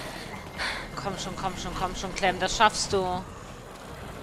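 Zombies groan and snarl close by.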